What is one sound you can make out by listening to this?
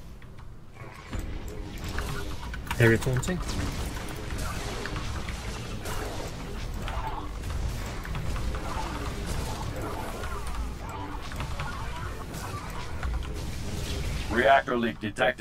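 Game battle effects crackle and boom.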